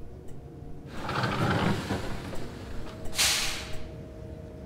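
Air hisses sharply from a bus's doors or brakes.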